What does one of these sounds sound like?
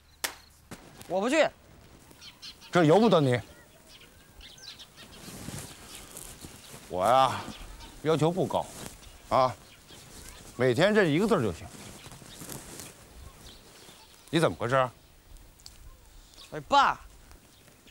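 A man talks outdoors.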